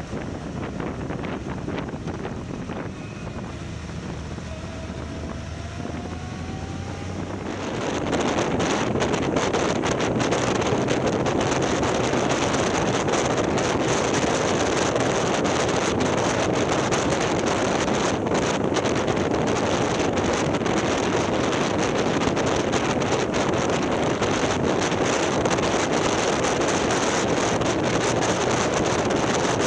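A motorcycle engine hums and revs up.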